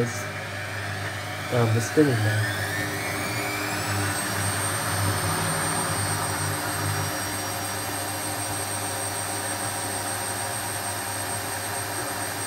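A washing machine motor whines higher and higher as the spin speeds up, then holds steady.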